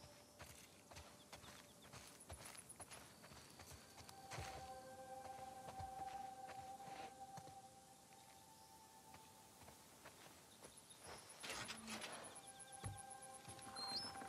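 Footsteps crunch through dry grass and gravel.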